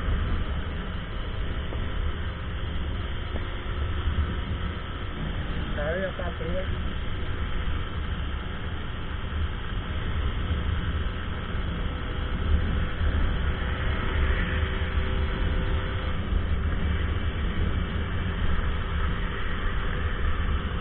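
Wind buffets the rider's microphone at speed.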